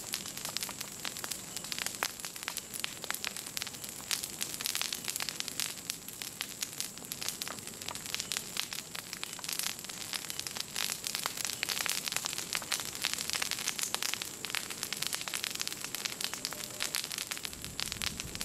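A fire crackles and pops loudly, close by.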